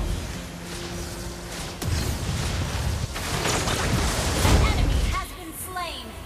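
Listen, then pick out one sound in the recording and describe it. Game battle effects crash and whoosh.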